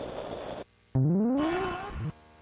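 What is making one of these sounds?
An electronic tone glides upward.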